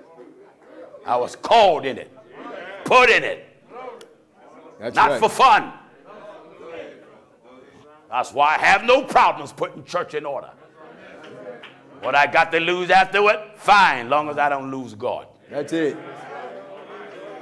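A man preaches forcefully through a microphone in a large echoing hall, with loud bursts between pauses.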